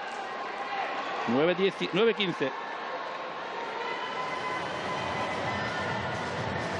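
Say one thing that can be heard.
A crowd murmurs steadily in a large echoing hall.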